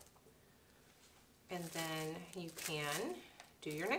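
Plastic wrap crinkles as it is handled.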